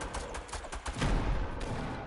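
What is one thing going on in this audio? A pickaxe swings and whooshes through the air.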